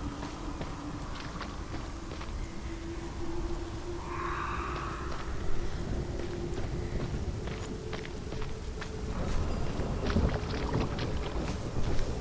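A low, steady rumble drones throughout.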